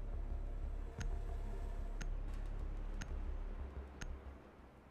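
A game countdown timer beeps once a second.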